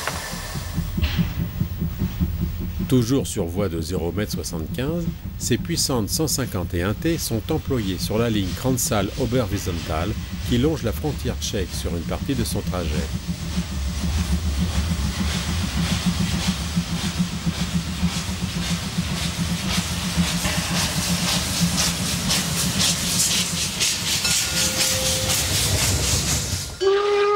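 Train wheels rumble and clank over the rails.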